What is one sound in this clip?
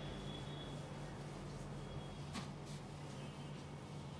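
A duster wipes across a whiteboard.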